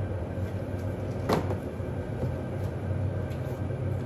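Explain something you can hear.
A plastic box rattles as it is handled.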